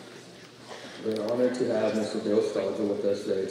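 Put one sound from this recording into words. A young man speaks calmly into a microphone over loudspeakers in a large hall.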